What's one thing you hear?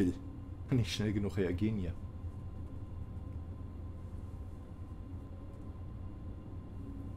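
A train hums low and steady as it rolls slowly along the track.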